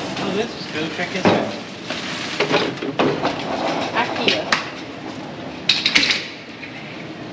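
A plastic chair clatters on a hard floor.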